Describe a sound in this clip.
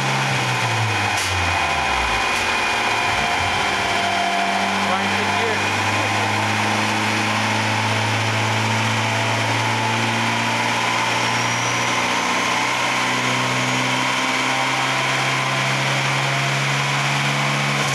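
A car engine winds down from a high rev and then holds a steady, loud drone.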